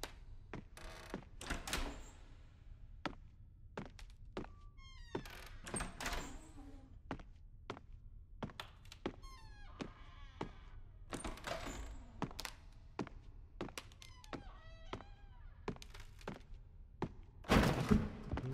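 Footsteps fall on a wooden floor.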